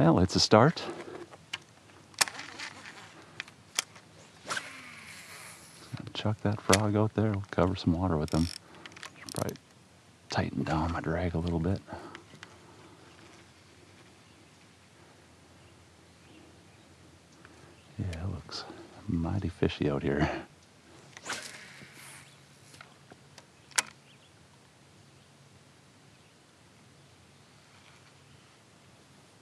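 Water laps softly against a kayak hull.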